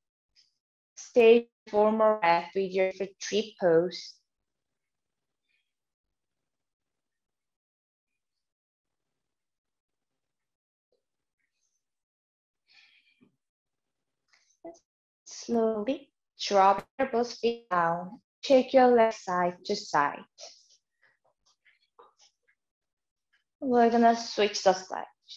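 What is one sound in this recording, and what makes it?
A young woman speaks calmly into a nearby microphone, giving instructions.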